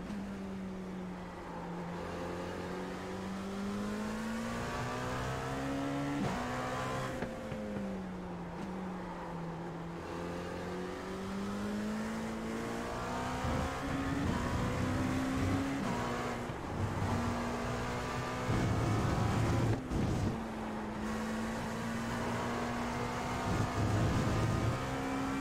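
A racing car engine drones and rises and falls in pitch as it shifts gears.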